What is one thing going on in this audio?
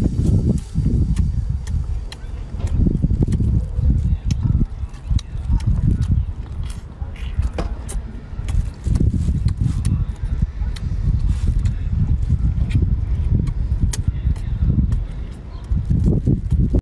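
A young woman chews and slurps wetly, close to a microphone.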